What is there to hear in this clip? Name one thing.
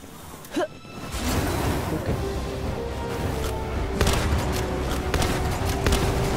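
A fiery explosion booms and roars on.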